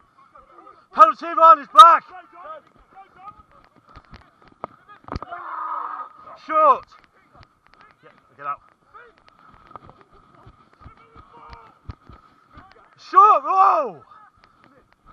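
Young men shout loudly nearby outdoors.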